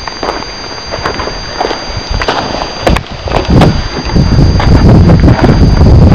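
Footsteps crunch on dry ground and wooden boards.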